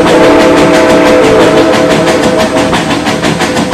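A steam whistle blows.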